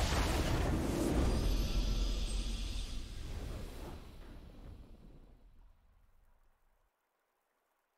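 A victory fanfare swells and fades out.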